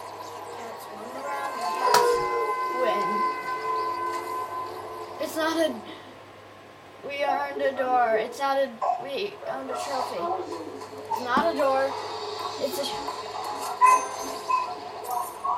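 Upbeat electronic game music and sound effects play through a loudspeaker.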